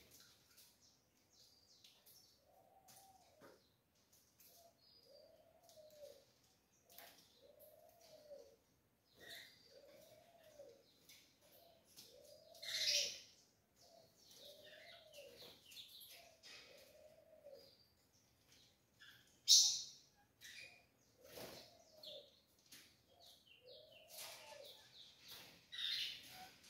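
Small birds chirp and twitter in high, quick notes.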